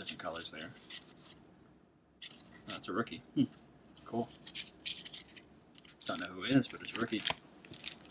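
Trading cards flick and rustle against each other.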